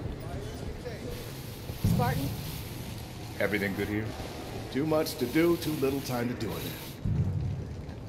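A welding torch hisses and crackles.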